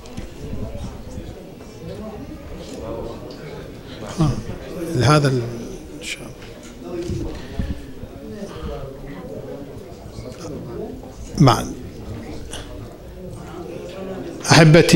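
A middle-aged man speaks into a microphone over loudspeakers in an echoing room.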